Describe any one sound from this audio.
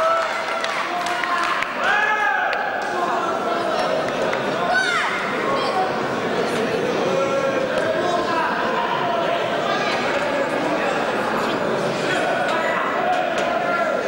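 Spectators shout and cheer from the stands.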